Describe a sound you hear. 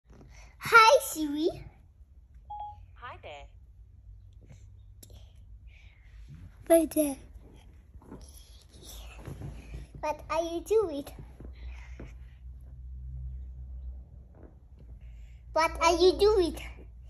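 A young boy talks and giggles close by.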